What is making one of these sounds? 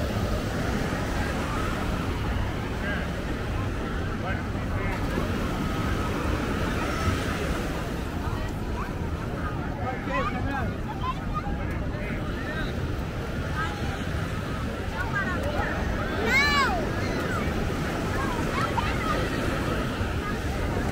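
Waves wash steadily onto the shore.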